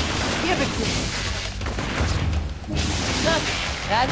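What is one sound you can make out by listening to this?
Electric blasts crackle and hiss in bursts.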